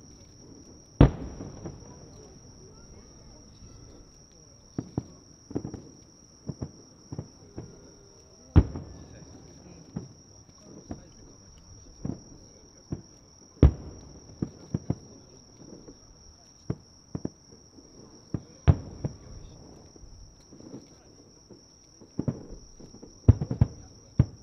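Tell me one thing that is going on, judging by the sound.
Fireworks burst with loud booms that echo far off.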